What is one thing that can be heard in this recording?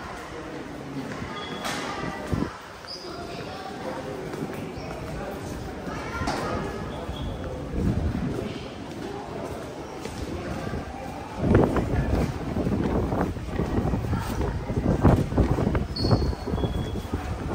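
Footsteps of a crowd walk on a hard floor in an echoing space.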